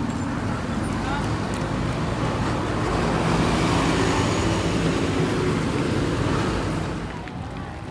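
A bus engine rumbles close by as a bus passes.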